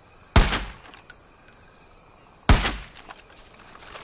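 A rifle fires single loud shots that echo away.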